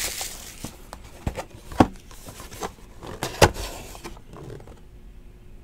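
Hands rub and tap a cardboard box.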